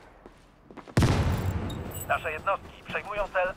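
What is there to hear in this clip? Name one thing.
A loud explosion booms and echoes.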